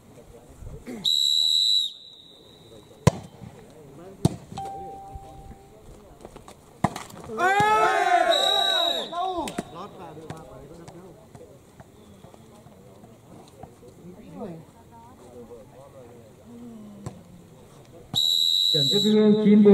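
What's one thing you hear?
A referee's whistle blows in short shrill blasts.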